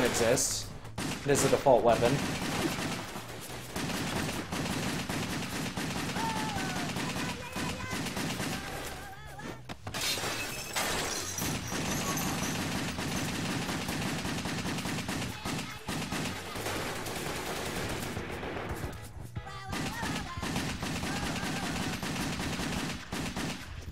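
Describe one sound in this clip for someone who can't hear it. Gunshots and explosions crack and boom in a video game.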